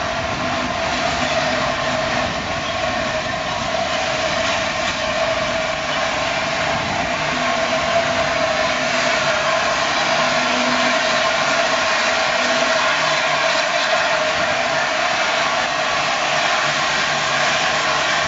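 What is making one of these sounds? Train wheels rumble and clank over rail joints.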